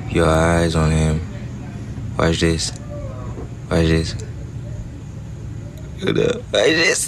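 A young man talks with animation through a phone recording.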